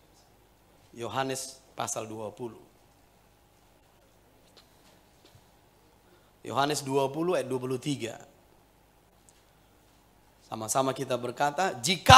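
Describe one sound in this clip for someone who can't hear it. A middle-aged man speaks with feeling through a microphone, in short bursts with pauses.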